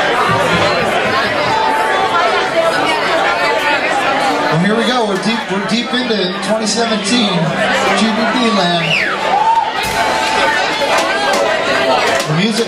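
A live band plays loudly.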